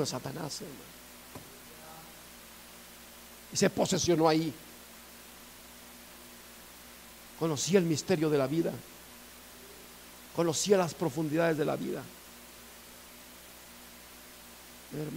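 A middle-aged man speaks in short, emphatic phrases with long pauses.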